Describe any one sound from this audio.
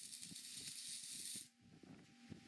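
A welding arc crackles and sizzles.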